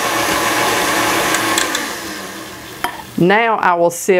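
A stand mixer whirs, beating butter and sugar.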